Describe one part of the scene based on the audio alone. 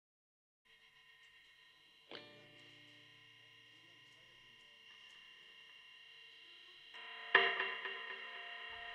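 Electric guitars play sustained, ringing chords.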